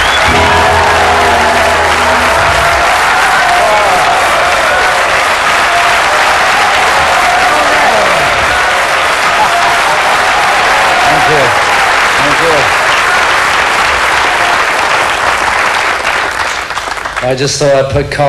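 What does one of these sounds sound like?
An audience cheers and applauds loudly.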